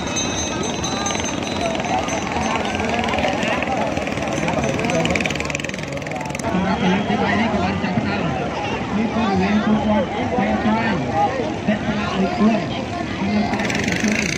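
A motorboat engine drones across the water.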